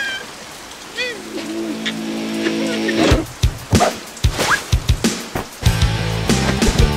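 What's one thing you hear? A cartoon creature sobs and whimpers.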